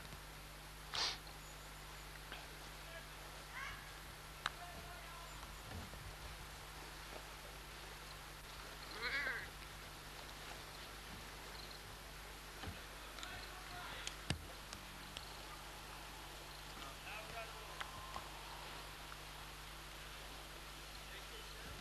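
Cows chew and snuffle close by.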